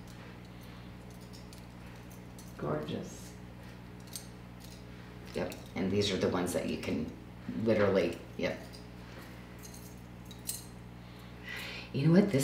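Metal bracelets clink softly against each other on a wrist.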